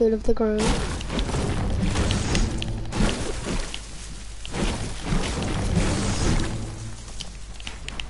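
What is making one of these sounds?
A pickaxe chops rapidly into wood.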